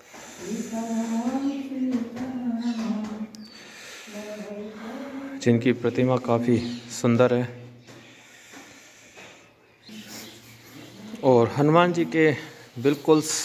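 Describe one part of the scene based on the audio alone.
An elderly man chants in a steady, sing-song voice.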